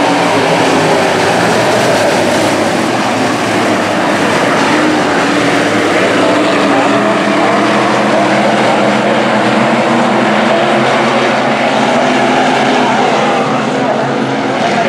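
Several race car engines roar loudly around a track, rising and falling in pitch.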